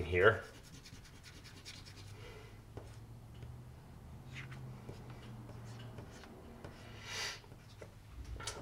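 A pencil scratches and rubs softly on paper.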